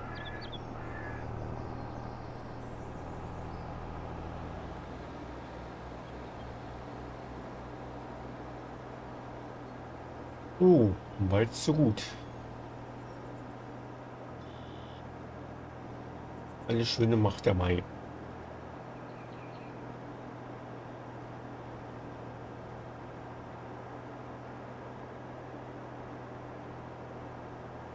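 A tractor engine hums steadily as the tractor drives along.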